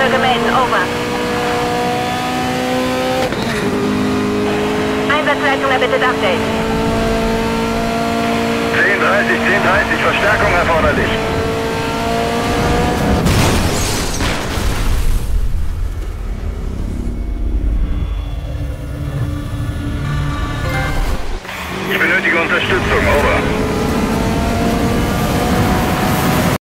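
A racing car engine roars at high speed, its pitch climbing steadily.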